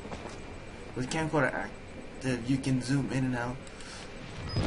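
A young man talks into a headset microphone, close and with animation.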